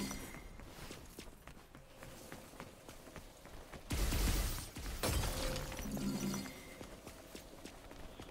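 Quick footsteps run on stone paving.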